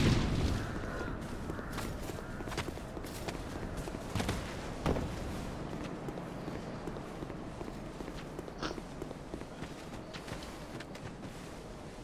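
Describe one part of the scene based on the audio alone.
Footsteps patter quickly on stone and grass.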